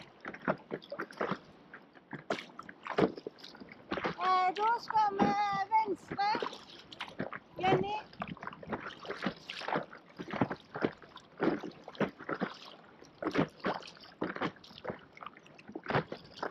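Water splashes and slaps against a board.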